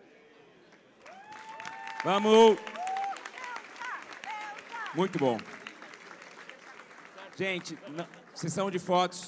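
A large crowd claps in a big echoing hall.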